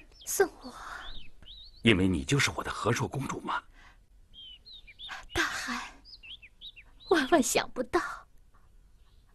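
A young woman speaks softly and sweetly, close by.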